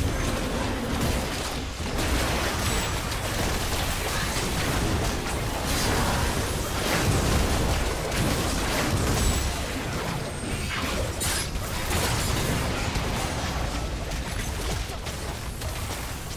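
Spell blasts and weapon hits clash rapidly in a video game battle.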